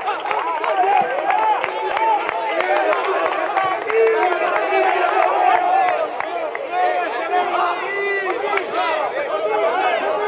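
A crowd of men shout and chatter outdoors.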